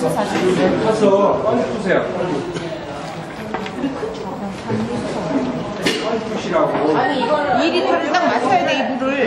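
A wooden paddle stirs and scrapes through damp flour in a metal bowl.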